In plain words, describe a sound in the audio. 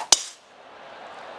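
A golf club strikes a ball with a sharp crack.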